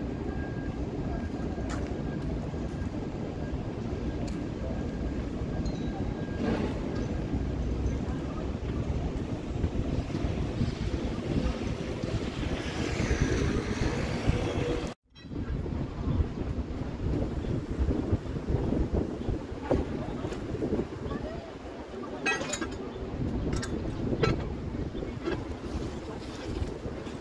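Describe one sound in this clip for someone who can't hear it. Street traffic hums steadily nearby.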